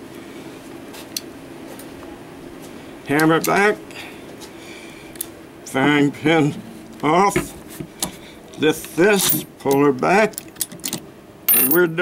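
Metal parts of a pistol click as it is opened and handled.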